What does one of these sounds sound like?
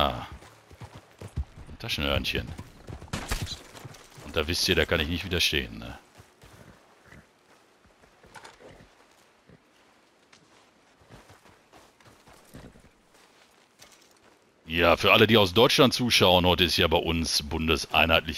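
A horse's hooves clop slowly on gravel.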